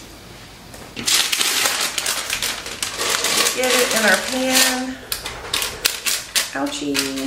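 Parchment paper crinkles and rustles loudly.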